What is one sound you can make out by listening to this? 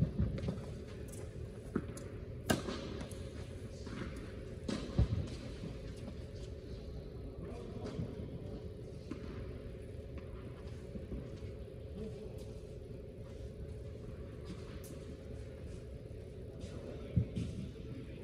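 A tennis racket strikes a ball with sharp pops in a large echoing indoor hall.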